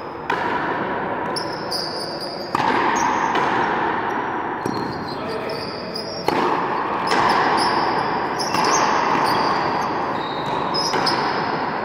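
A racket strikes a frontenis ball with a sharp crack, echoing through a large hall.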